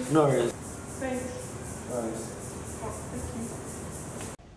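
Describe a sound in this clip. A teenage boy answers briefly and quietly.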